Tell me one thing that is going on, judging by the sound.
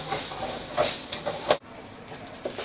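A binder's metal rings snap open.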